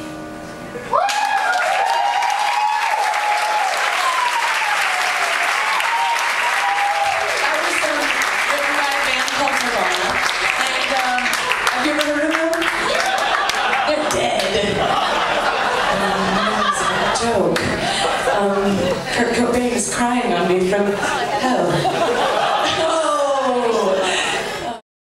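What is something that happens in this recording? A woman sings into a microphone over a loudspeaker.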